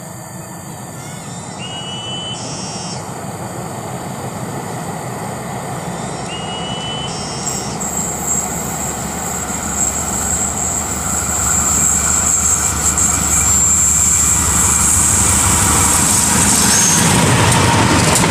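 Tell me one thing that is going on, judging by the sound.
A train's engine rumbles as it approaches, growing steadily louder.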